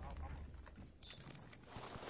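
Short electronic clicks and beeps sound from a game menu.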